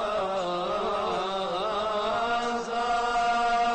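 Elderly men chant together in a slow, sustained melody.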